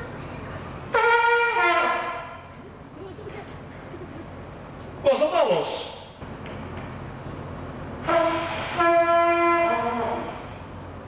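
A trumpet plays short bright notes.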